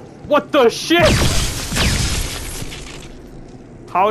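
A loud explosion bursts and rumbles away.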